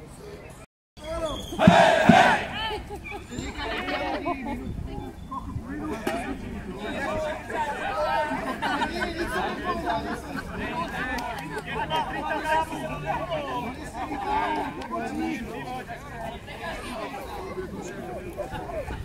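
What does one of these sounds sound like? A large group of men and women talk and call out together nearby.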